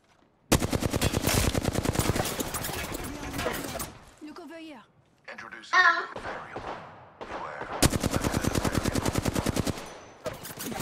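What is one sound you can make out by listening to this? Rapid automatic gunfire rattles in fast bursts.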